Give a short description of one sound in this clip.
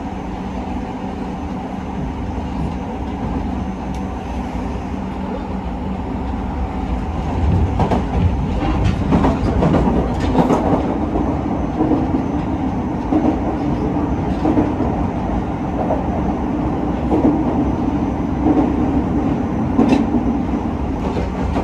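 A vehicle's engine and tyres rumble steadily, heard from inside as it drives along a road.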